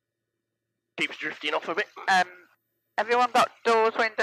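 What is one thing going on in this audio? A woman speaks calmly over a headset intercom.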